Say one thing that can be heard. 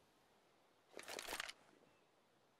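A rifle is drawn with a metallic clack.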